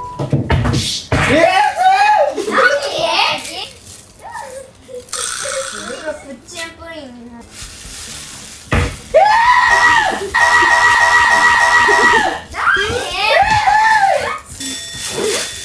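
Young boys shout and wail loudly.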